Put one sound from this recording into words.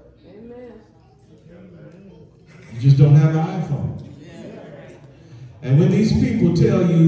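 A man speaks with animation through a microphone in a room with some echo.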